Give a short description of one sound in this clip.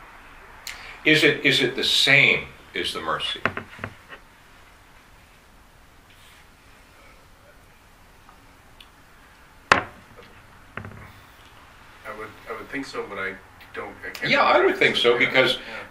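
An older man speaks calmly and thoughtfully, close to a microphone.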